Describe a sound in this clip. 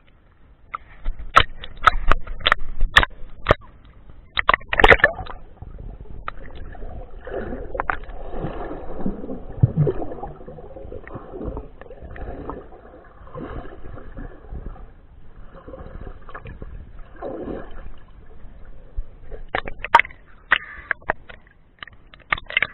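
Water splashes and slaps close by at the surface.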